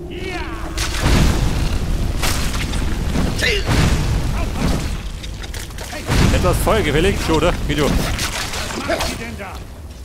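Flames roar and crackle in loud bursts.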